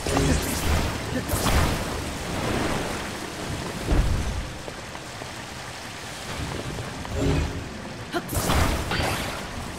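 Lava bubbles and hisses steadily.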